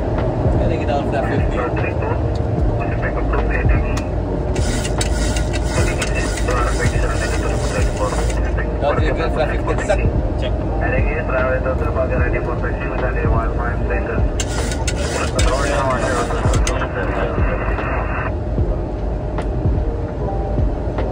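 A man speaks calmly over a headset microphone.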